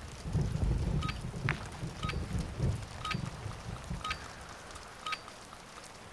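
Short electronic beeps count down at a steady pace.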